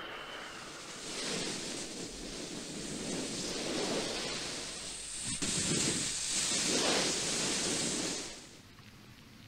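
Steam hisses loudly from a vent.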